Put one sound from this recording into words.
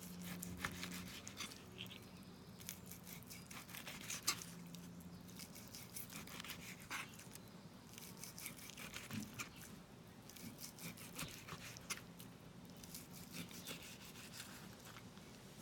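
A knife slices through meat with soft scraping.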